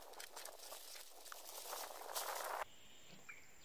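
Leafy branches rustle and scrape against a boat.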